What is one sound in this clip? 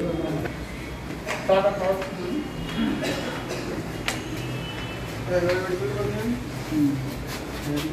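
Several men walk with shuffling footsteps.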